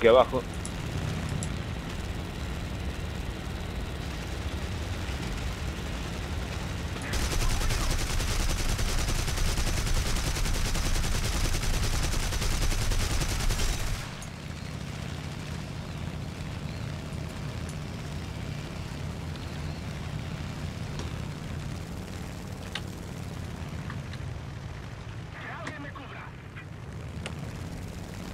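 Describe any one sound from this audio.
A propeller plane's engine drones steadily, growing louder for a while before settling again.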